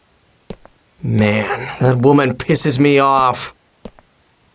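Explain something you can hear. A young man speaks in irritation.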